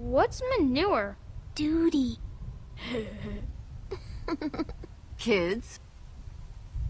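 A boy speaks with a questioning tone.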